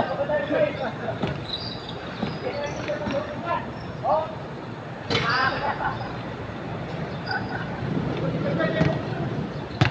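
Young men call out to each other outdoors.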